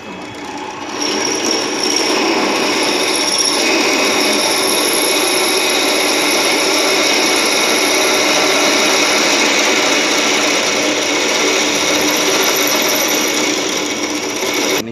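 A drill press bit grinds into metal as it is fed down by hand.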